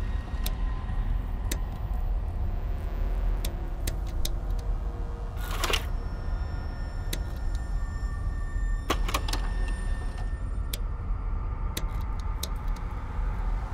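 Short soft clicks tick as menu selections change.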